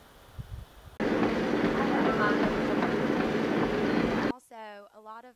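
A treadmill belt whirs steadily.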